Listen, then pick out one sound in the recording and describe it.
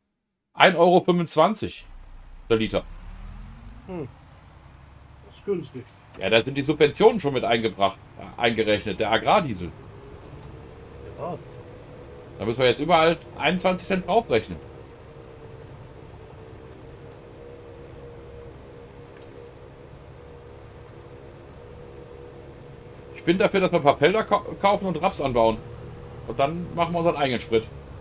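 A man talks casually and with animation into a close microphone, in bursts.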